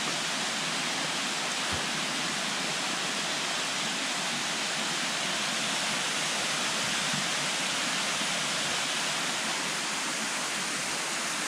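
A small stream rushes and splashes steadily over rocks.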